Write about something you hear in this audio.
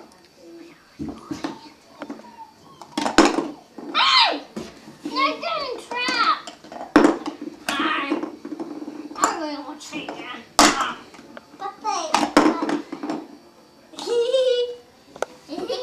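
Plastic toys clack and rattle.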